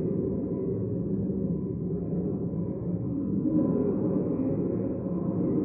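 Many people murmur and talk quietly in a large echoing hall.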